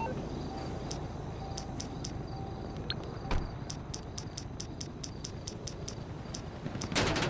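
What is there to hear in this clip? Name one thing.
A phone beeps quickly as its menu is scrolled.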